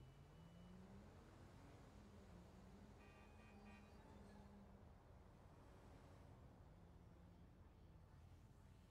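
Car engines hum and rev along a street.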